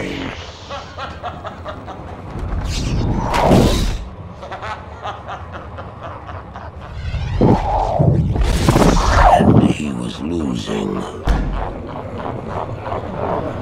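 A man laughs wildly, close by.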